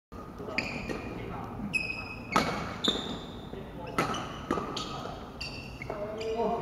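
Badminton rackets strike a shuttlecock in a large echoing hall.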